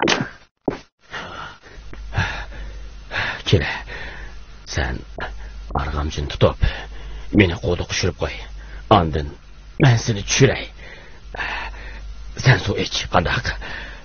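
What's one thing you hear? An elderly man speaks quietly and urgently, close by.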